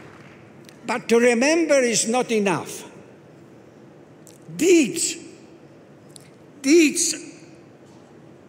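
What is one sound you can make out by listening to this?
An elderly man speaks slowly and firmly into a microphone.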